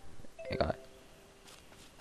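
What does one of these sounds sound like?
Footsteps crunch softly on dry leaves.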